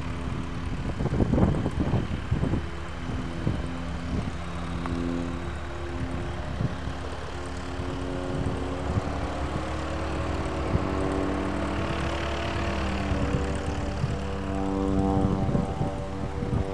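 Wind buffets outdoors in low rumbles.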